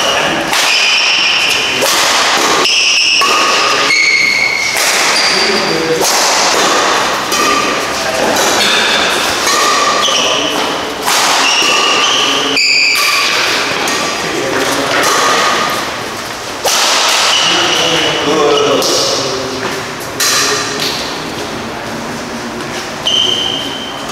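Shoes squeak sharply on a hard court floor in an echoing hall.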